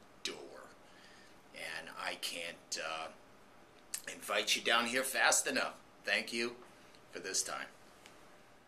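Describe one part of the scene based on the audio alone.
A middle-aged man speaks calmly and close up to the listener.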